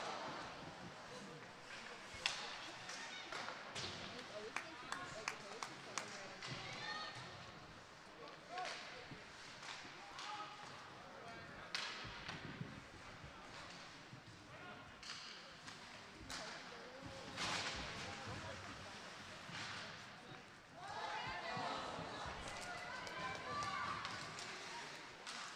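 A crowd murmurs and cheers in an echoing arena.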